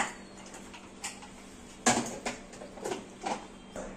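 A plate clinks and knocks against a countertop.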